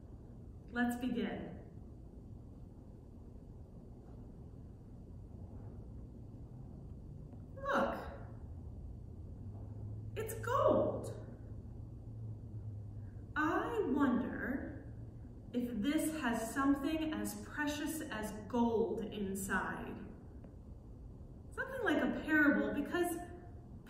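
A woman speaks calmly and clearly, close by, in a room with a slight echo.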